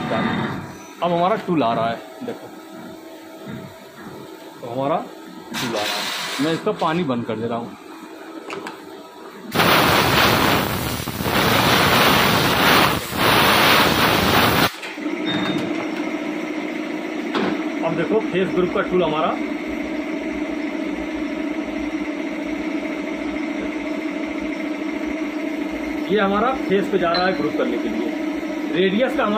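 A lathe whirs steadily as a cutting tool shaves a spinning metal part.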